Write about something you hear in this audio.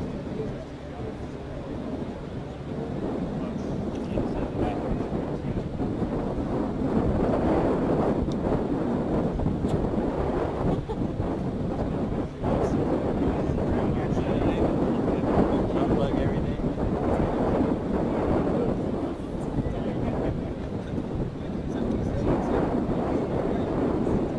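Wind blows hard over the microphone outdoors.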